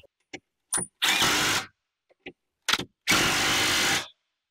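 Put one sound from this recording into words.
A cordless power tool whirs in short bursts.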